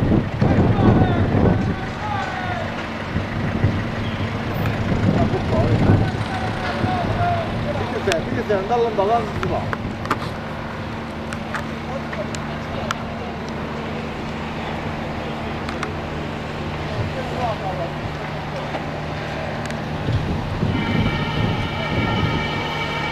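A large fire roars and crackles in the distance.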